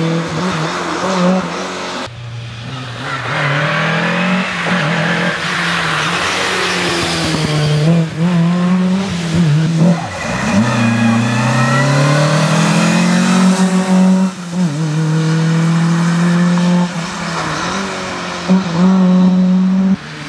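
A rally car engine roars loudly, revving up and down through the gears.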